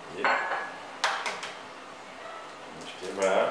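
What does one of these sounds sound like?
An egg cracks with sharp taps against a hard edge.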